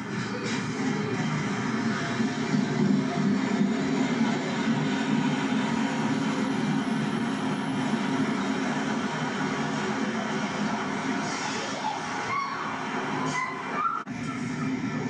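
A Pacer diesel railbus rolls past close by.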